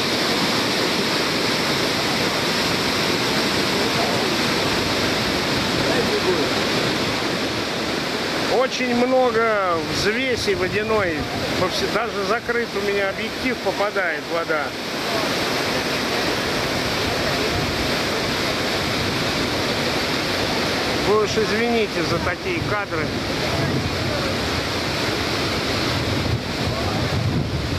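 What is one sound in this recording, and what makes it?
A large waterfall roars and thunders outdoors.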